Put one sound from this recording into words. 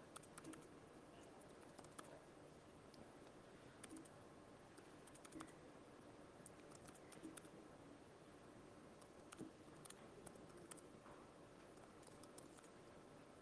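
Keys click sharply and unevenly on a laptop keyboard.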